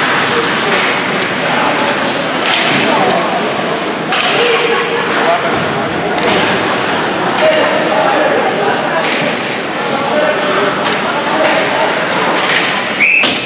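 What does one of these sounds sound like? Hockey sticks and a puck clack against each other and the boards.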